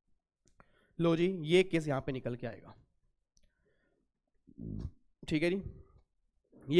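A man speaks calmly into a microphone, lecturing in short phrases.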